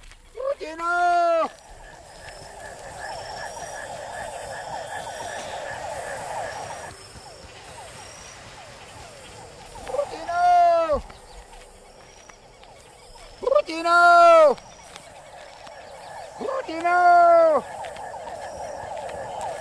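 Sandals scuff and step on dry dirt.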